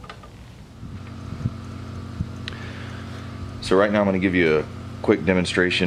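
A small power tool hums steadily.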